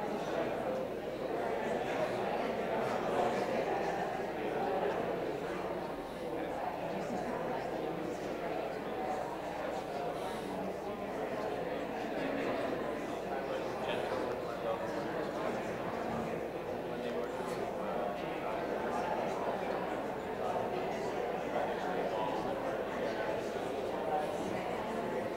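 An elderly man speaks calmly and steadily into a close microphone, as if reading aloud.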